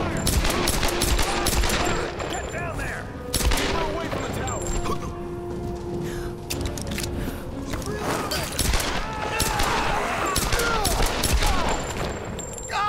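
Pistol shots crack in rapid bursts.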